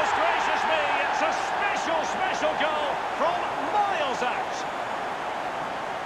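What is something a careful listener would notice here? A large crowd cheers and roars loudly in a stadium.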